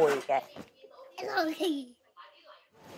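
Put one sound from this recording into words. A small child laughs and squeals close by.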